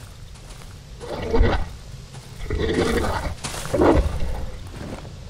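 Footsteps shuffle over leaves and dirt.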